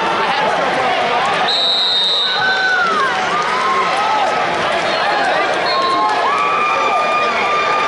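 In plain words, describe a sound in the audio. A large crowd chatters and shouts across an echoing arena.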